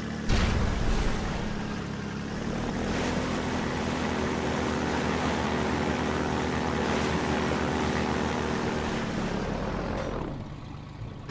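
An airboat engine drones steadily.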